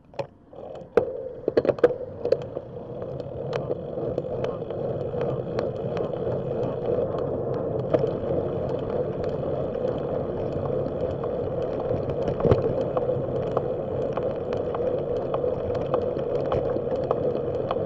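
Tyres hum and rumble on rough asphalt.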